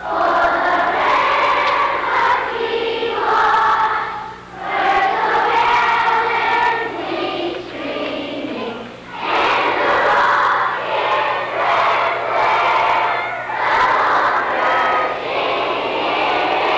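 A large crowd chatters and murmurs loudly in an echoing hall.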